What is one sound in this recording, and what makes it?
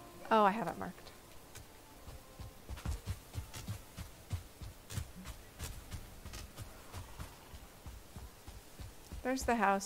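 Footsteps rustle through undergrowth.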